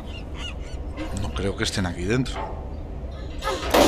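A metal axe scrapes and knocks against a wooden door.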